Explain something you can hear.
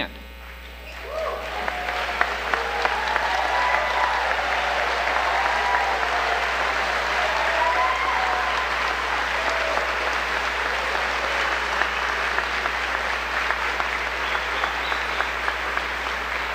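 A large crowd applauds and cheers in a large echoing hall.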